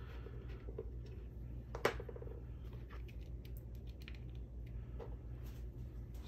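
Small metal tools click and clink as they are set down on a hard surface.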